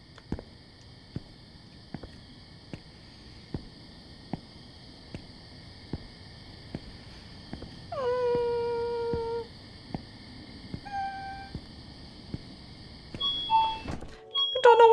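Footsteps walk steadily on hard pavement.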